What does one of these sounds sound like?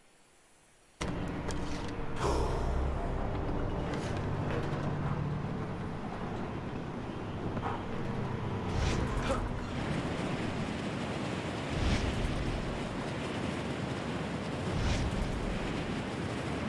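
Wind rushes loudly past during a fast descent.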